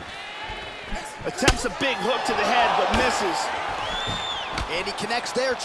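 Punches thud sharply against a body.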